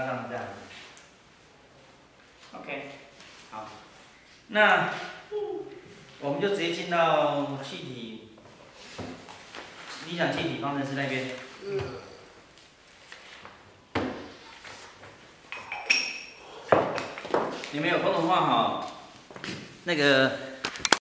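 A middle-aged man speaks calmly in a room with some echo.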